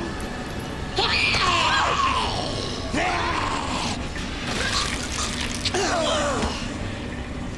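A creature snarls and shrieks.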